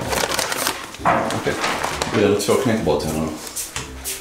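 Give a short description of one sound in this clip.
A paper bag crinkles and rustles.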